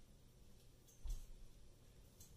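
A cat's paws thump softly on a metal frame.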